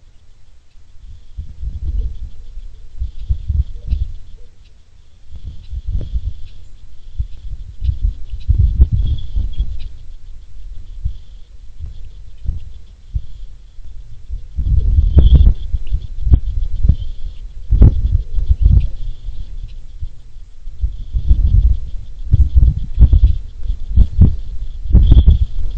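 Wind gusts roughly outdoors, rumbling against the microphone.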